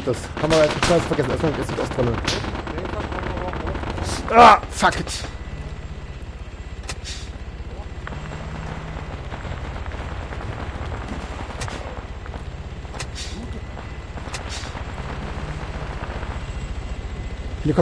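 A vehicle engine rumbles low and steady while driving over rough ground.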